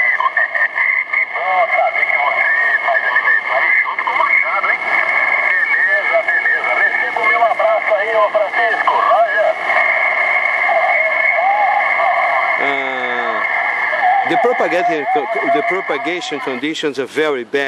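A radio gives off a steady high whine.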